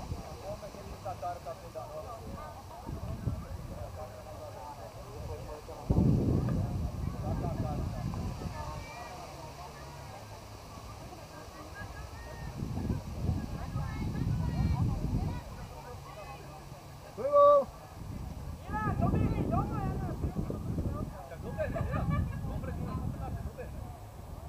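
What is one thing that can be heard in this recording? Distant players call out to each other outdoors.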